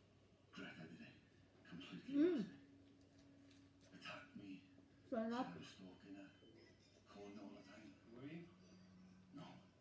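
A woman chews food noisily.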